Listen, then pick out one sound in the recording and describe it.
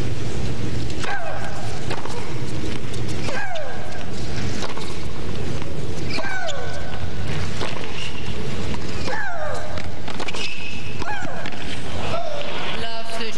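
A tennis ball is struck hard by a racket, back and forth in a rally.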